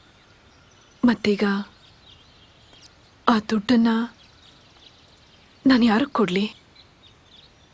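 A woman speaks in a stern, questioning voice.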